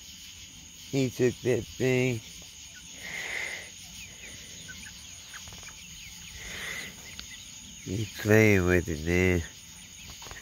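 Chickens squawk loudly in short bursts nearby.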